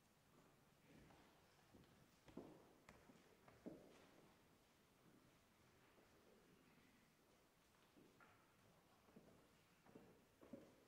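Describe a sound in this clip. Footsteps shuffle across a floor in a large, echoing hall.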